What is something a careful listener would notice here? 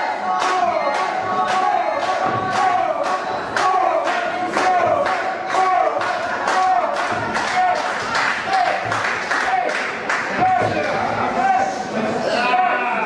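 A crowd claps in a steady rhythm in a large hall.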